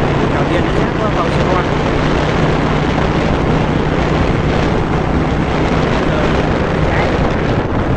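Wind rushes loudly past the moving vehicle.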